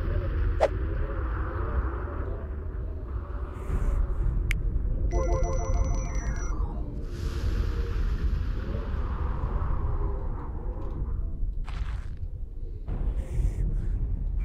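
Low rumbling battle sounds roll on steadily.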